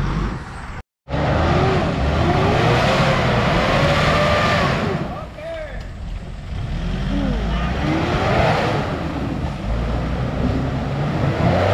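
A truck engine revs hard.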